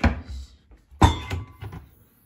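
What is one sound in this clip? A cabinet door knocks as it opens and shuts.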